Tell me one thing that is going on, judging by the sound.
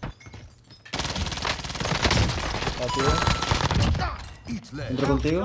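Video game submachine gun fire crackles in rapid bursts.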